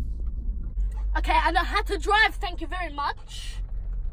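A young woman speaks expressively close by.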